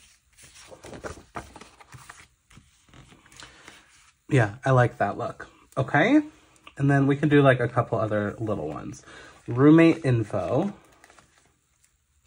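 Paper pages rustle as they are handled and turned.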